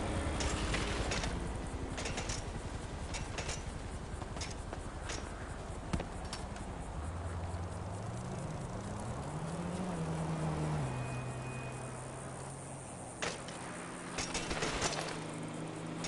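A bicycle crashes hard onto the road.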